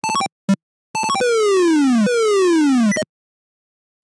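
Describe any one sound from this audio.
A computer game's PC speaker plays a falling tone twice.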